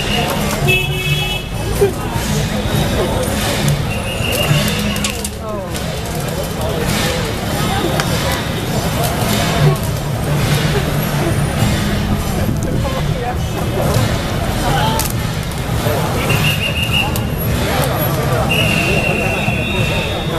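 A crowd of people chatters outdoors in a busy street.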